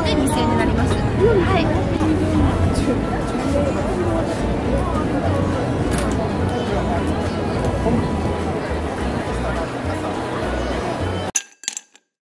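A crowd murmurs nearby, outdoors.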